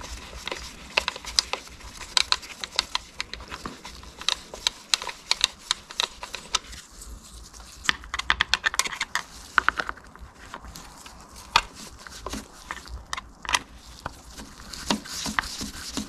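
Small metal parts click and rattle as fingers handle them.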